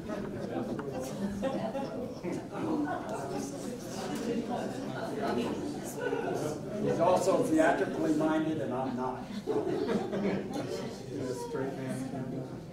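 A man speaks calmly to a room, slightly echoing.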